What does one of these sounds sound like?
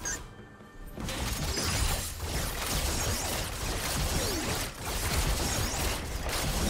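Weapons clash and thud in a hectic fight.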